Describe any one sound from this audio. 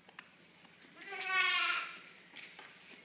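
A lamb bleats loudly once, close by.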